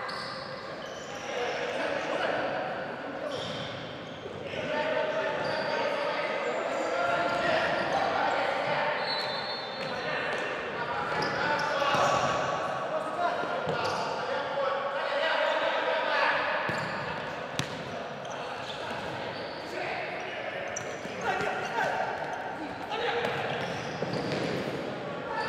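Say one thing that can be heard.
A ball thuds when kicked.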